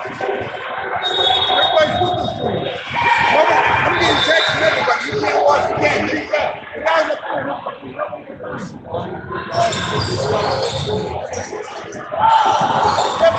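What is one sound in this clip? A group of young players and adults talk and call out across a large echoing gym.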